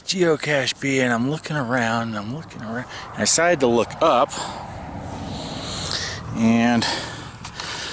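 A man speaks with animation close by, outdoors.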